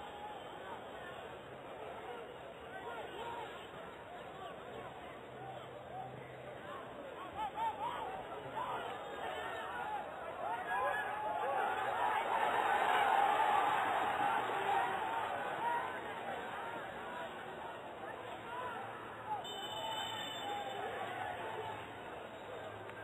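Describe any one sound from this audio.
A large crowd chatters and shouts outdoors, swelling to a roar and then settling.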